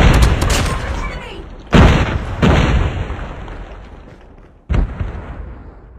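Gunshots fire in loud bursts, echoing off walls.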